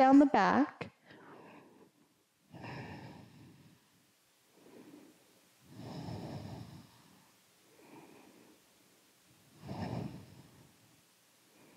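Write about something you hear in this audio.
A woman breathes in and out slowly and deeply.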